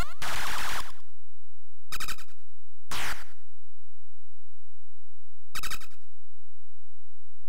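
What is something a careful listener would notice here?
Harsh electronic game sound effects buzz and warble in short bursts.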